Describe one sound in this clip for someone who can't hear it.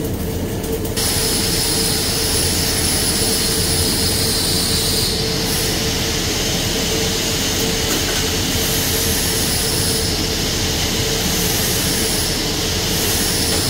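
A cutting torch hisses loudly and steadily.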